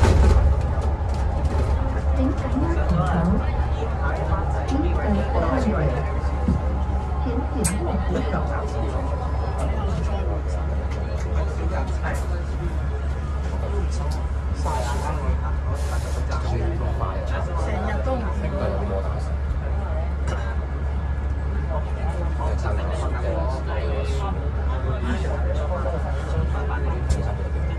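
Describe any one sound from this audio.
Young boys chatter close by.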